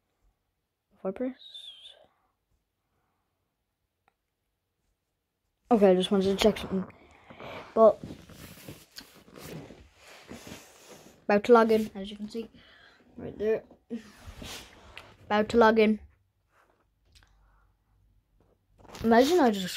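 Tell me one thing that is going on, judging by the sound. A young girl speaks close up with animation, in short bursts.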